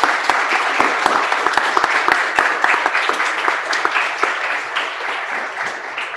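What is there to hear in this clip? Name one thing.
An audience applauds in a large echoing hall, the clapping slowly thinning out.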